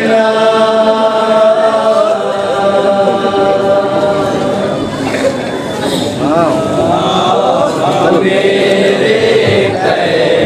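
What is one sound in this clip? A man sings a lament loudly through a microphone.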